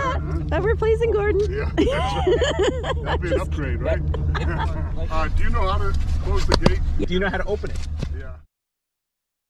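Middle-aged men talk and laugh outdoors, close by.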